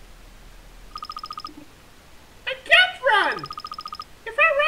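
Rapid soft beeps tick as dialogue text types out in a video game.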